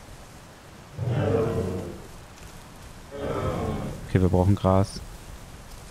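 A large creature lets out loud, deep calls.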